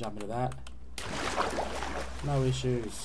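Water splashes loudly as something plunges in.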